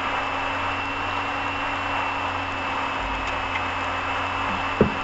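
A car drives steadily along a highway, with a constant hum of tyres and engine from inside.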